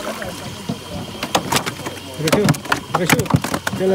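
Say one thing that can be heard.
A fish splashes in the water beside a boat.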